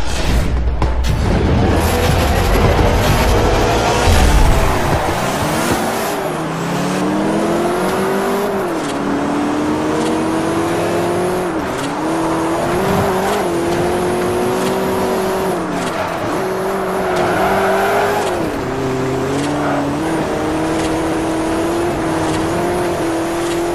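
A car engine roars, its pitch rising and dropping sharply with each gear change.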